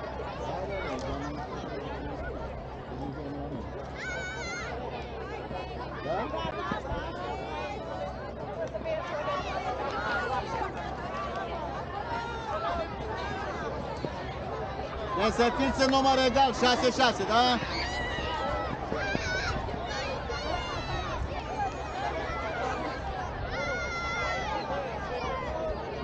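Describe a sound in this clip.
A crowd of people chatters outdoors in the distance.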